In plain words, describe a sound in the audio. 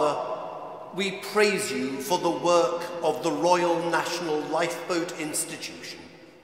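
A large congregation sings together.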